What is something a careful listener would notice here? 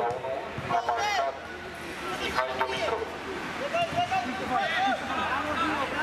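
Men shout to each other across an outdoor field.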